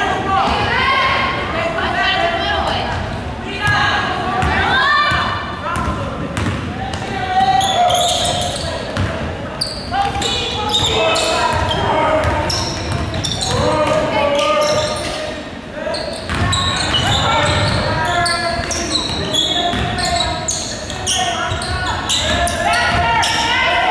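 Young men and women talk and call out to one another across an echoing hall.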